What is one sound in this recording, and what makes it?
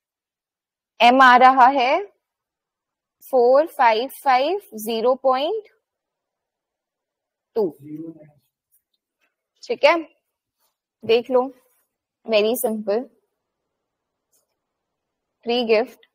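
A young woman speaks calmly in short phrases, close to a microphone, as if on an online call.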